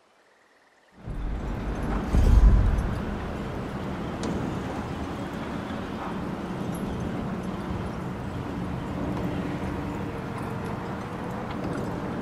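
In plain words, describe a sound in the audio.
Wind blows steadily across an open mountainside.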